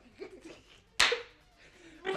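Two hands slap together in a sharp high five.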